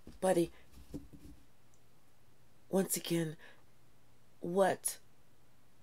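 A woman speaks with animation close to a microphone, in short bursts.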